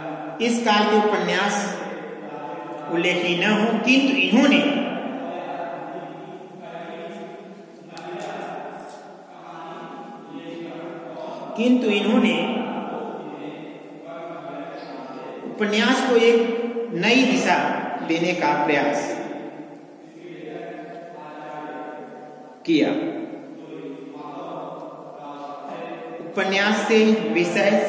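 A man speaks steadily, as if lecturing, in a room with a slight echo.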